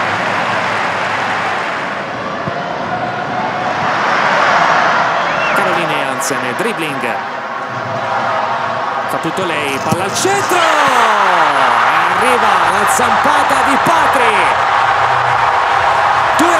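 A large stadium crowd murmurs and chants steadily outdoors.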